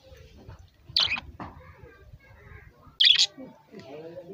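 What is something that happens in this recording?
Budgerigars chirp in short, high bursts.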